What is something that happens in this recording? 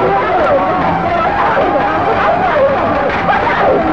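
A woman cries out in alarm.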